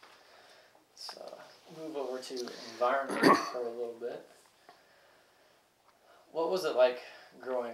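An elderly man speaks calmly and slowly close to a microphone.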